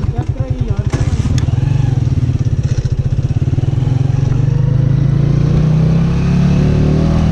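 A motorcycle engine revs up and pulls away.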